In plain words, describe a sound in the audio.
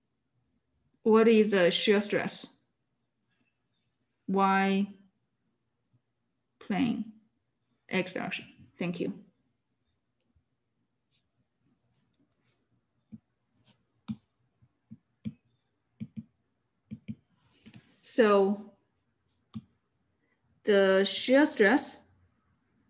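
A young woman speaks calmly in short phrases over an online call.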